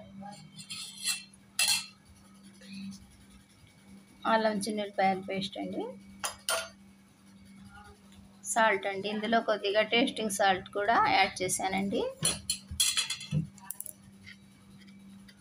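A metal spoon clinks against a steel bowl.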